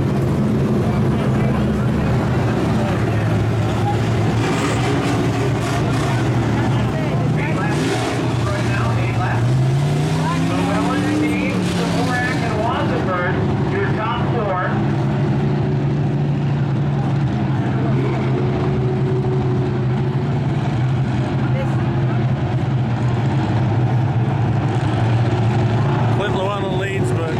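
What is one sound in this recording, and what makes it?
Race car engines roar and drone steadily.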